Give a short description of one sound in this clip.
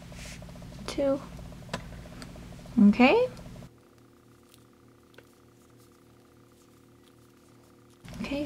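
Wooden knitting needles click softly as yarn is knitted.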